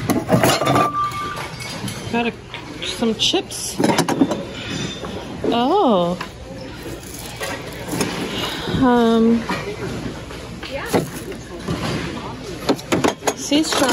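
Ceramic dishes clink and knock as they are handled.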